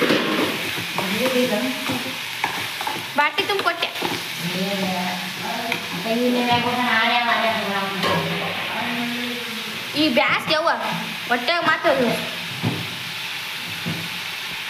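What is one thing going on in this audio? A metal spoon scrapes and stirs food in a metal pan.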